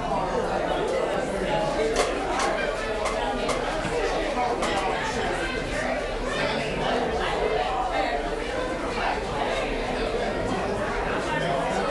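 A drum kit is played with cymbal hits.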